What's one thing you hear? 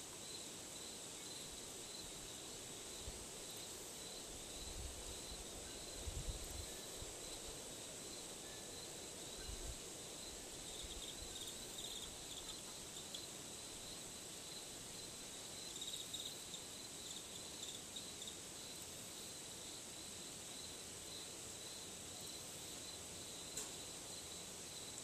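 Wind chimes tinkle faintly outdoors.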